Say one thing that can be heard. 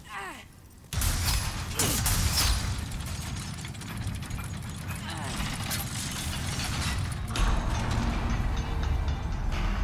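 Heavy gears grind and rumble loudly.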